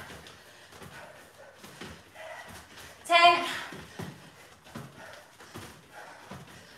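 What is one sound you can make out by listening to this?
Feet thump softly on exercise mats.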